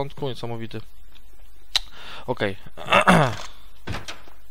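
A young man talks with animation into a close headset microphone.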